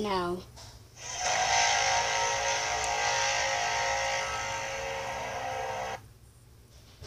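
A toy plays a loud, buzzing electronic sound effect.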